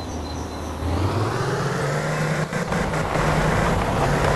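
A heavy truck engine revs higher.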